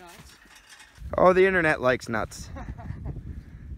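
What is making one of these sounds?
A metal tree stand clatters as it tips and crashes into the snow.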